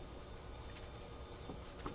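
Fine powder pours down onto a heap with a soft hiss.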